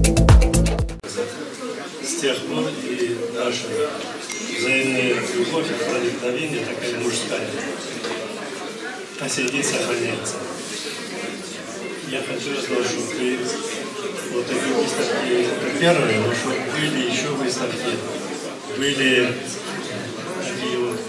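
An elderly man speaks calmly into a microphone through a loudspeaker in an echoing room.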